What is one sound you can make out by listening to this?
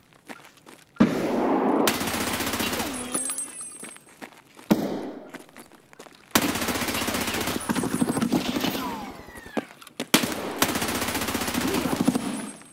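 Rapid bursts of automatic gunfire ring out loudly.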